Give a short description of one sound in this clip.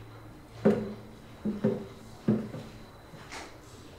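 Objects knock and clatter close by as they are handled.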